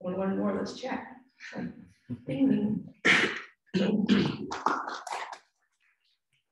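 A woman speaks with animation through a microphone.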